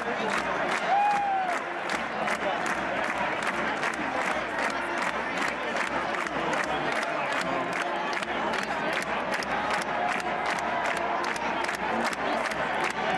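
Many people clap in rapid, steady applause close by.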